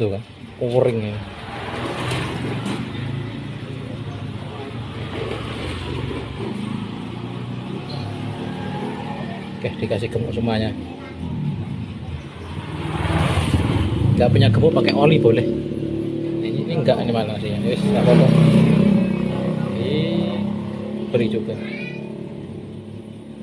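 Metal parts clink and scrape together in a person's hands.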